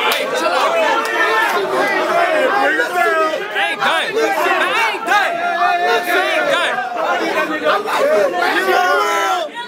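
A young man raps loudly and rhythmically close by.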